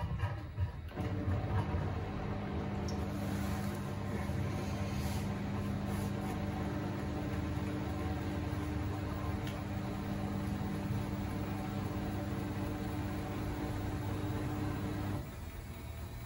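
A washing machine drum turns with a steady low hum.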